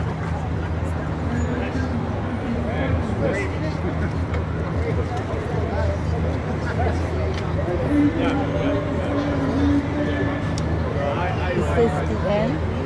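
A crowd of adults murmurs and chats outdoors.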